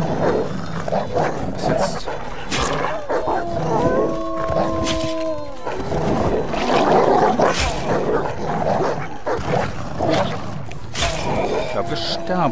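Creatures snarl and growl as they fight.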